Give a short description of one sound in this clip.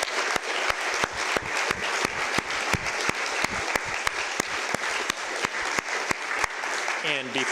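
An audience applauds loudly in a room.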